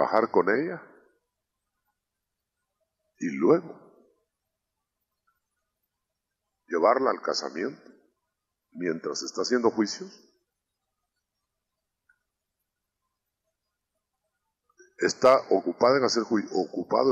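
An adult man speaks with animation through a microphone, pausing between phrases.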